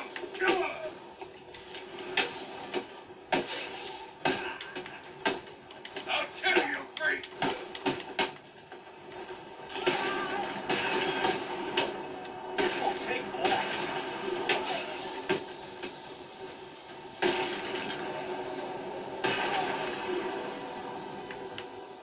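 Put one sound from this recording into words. Punches and heavy thuds from a video game fight play through a television speaker.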